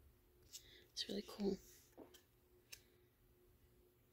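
Playing cards slide and tap softly as a hand handles them.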